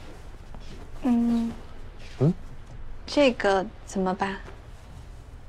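A young woman speaks close by with a questioning tone.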